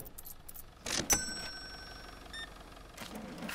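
A cash register chimes as a sale completes.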